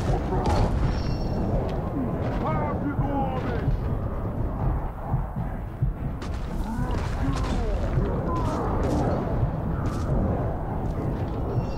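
Creatures grunt and roar as they attack.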